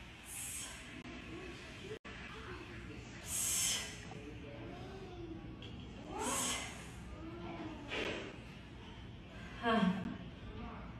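A woman breathes out forcefully with each lift.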